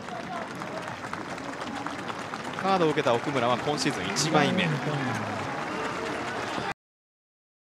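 A stadium crowd murmurs in the distance.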